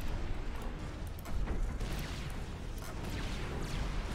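Weapons fire in short bursts.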